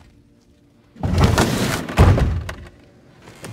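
A heavy wooden door grinds open.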